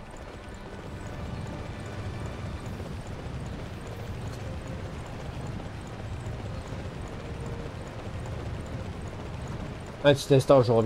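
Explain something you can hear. Horse hooves clatter on a wooden bridge.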